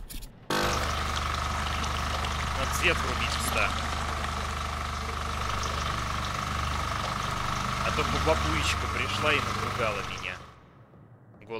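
An electrical machine hums steadily.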